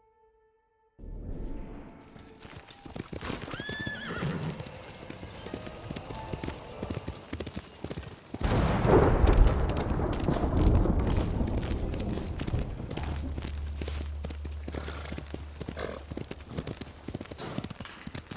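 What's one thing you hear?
Horse hooves thud quickly on soft ground.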